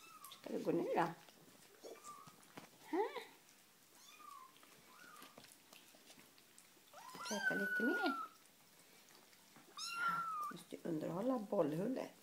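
A cat meows and chirps close by.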